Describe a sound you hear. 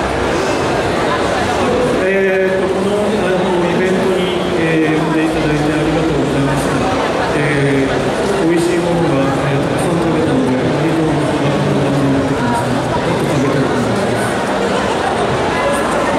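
A young man speaks with animation into a microphone over loudspeakers.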